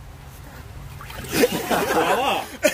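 Water splashes as a man lifts his head out of a tub.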